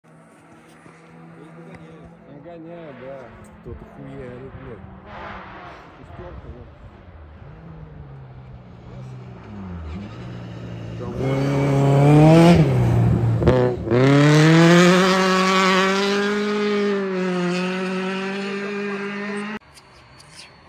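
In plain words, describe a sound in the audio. A car engine revs hard and roars past close by, then fades.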